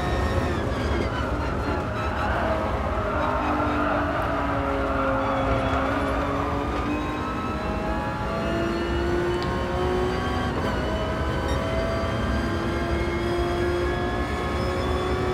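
A racing car engine drones loudly, dropping in pitch and then revving higher as it speeds up.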